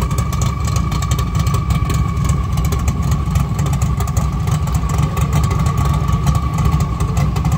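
A car engine idles close by with a deep, lumpy rumble.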